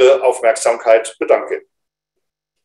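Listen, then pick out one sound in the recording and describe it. An older man speaks briefly and calmly over an online call.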